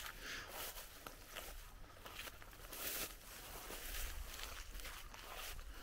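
Wind blows through tall grass and rustles it outdoors.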